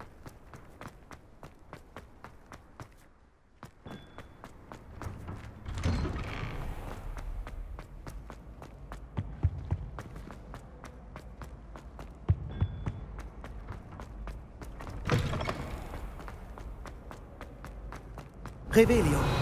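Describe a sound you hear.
Quick footsteps run on stone floors.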